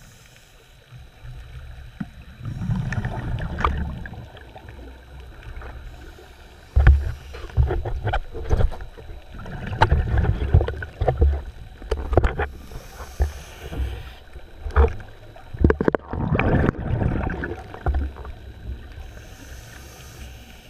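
Water sloshes and rumbles in low bursts, heard underwater.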